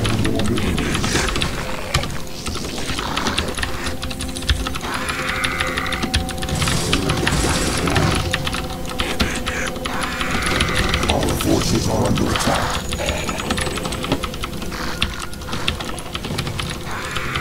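A computer mouse clicks rapidly.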